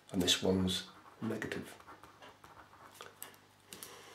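A pen scratches on paper as it writes.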